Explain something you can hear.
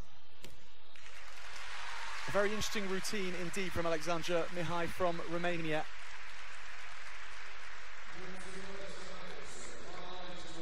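A large crowd claps and cheers in a big echoing hall.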